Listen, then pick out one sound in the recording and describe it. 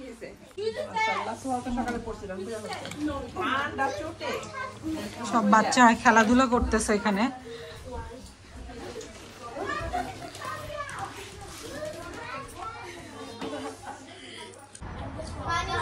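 Young girls talk and giggle excitedly close by.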